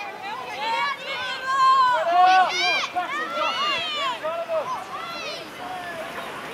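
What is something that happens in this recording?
Children shout excitedly nearby outdoors.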